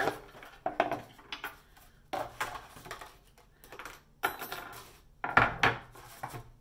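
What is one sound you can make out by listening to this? A hammer taps on wood.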